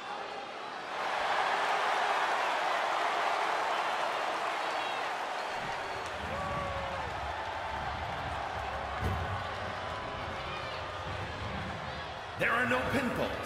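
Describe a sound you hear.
A large crowd cheers loudly in a large arena.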